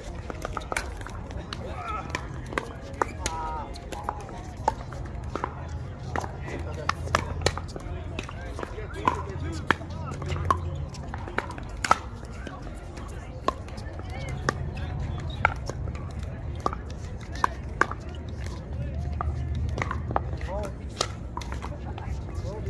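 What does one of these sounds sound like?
Pickleball paddles pop against a plastic ball in a rally outdoors.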